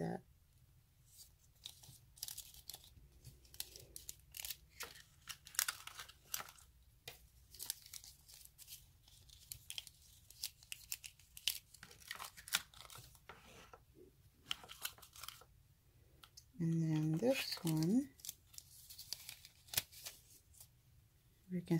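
Thin foil crinkles and rustles between fingers.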